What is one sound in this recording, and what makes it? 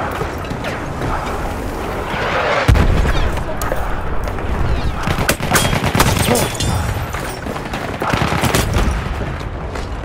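Gunfire crackles in sharp bursts.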